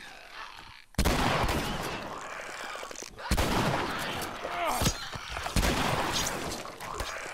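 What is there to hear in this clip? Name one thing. A pistol fires several loud shots.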